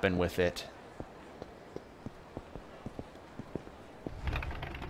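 Footsteps tap steadily on hard pavement.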